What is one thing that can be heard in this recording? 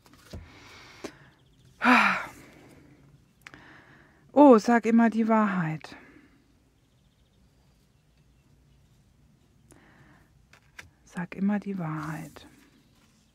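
Playing cards slide and tap softly on a hard tabletop.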